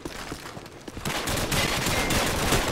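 Gunfire and explosions crackle loudly nearby.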